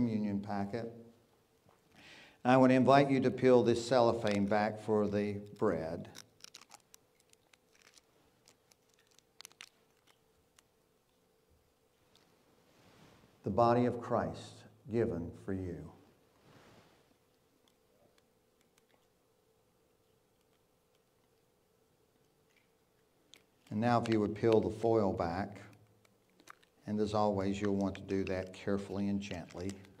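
An elderly man speaks slowly and solemnly into a microphone, with pauses.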